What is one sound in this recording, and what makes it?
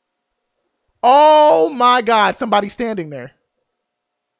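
A young man screams loudly and close to a microphone.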